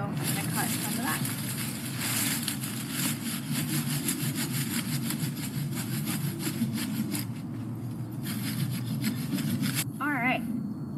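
Dry leaves rustle and crunch as someone digs in the ground.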